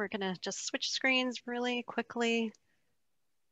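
A woman speaks with animation into a headset microphone, heard through an online call.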